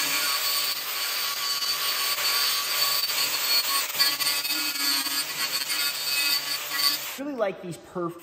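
An angle grinder whines loudly against metal.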